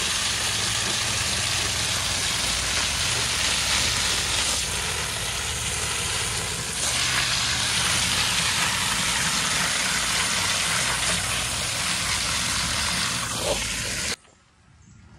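Water from a hose sprays hard onto a filter cartridge and splashes.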